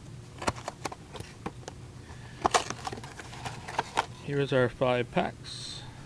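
Cardboard flaps rustle and click as a box is opened.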